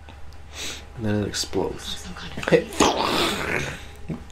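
A woman speaks with curiosity.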